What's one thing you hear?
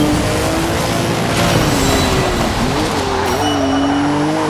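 Tyres screech as a car drifts around a corner.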